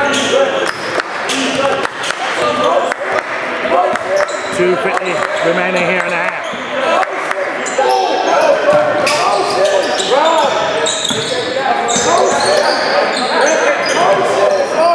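Spectators in the stands talk and call out.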